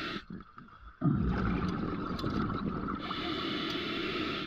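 Bubbles gurgle and rush from a diver's breathing underwater.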